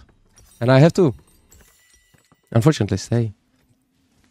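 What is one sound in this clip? A young man speaks loudly and with animation into a close microphone.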